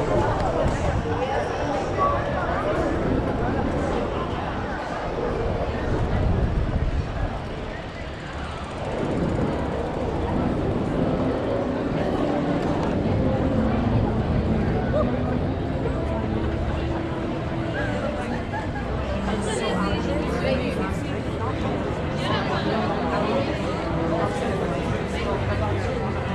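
Wheels roll over paving and cobblestones.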